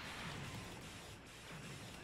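An energy beam blasts with a whooshing rush.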